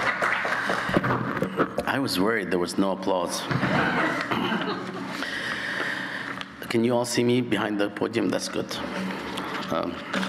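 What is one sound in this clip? A middle-aged man speaks warmly into a microphone.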